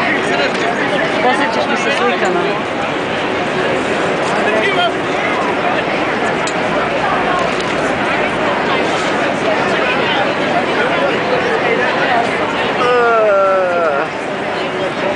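A busy crowd of men and women chatters all around, outdoors.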